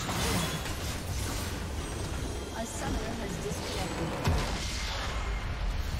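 Game spells crackle and whoosh in a busy battle.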